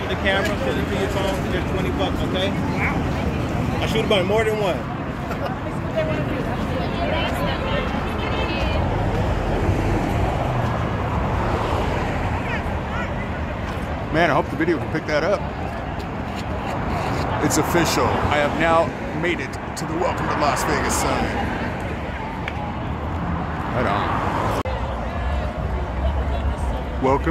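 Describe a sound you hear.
A crowd of people chatter nearby outdoors.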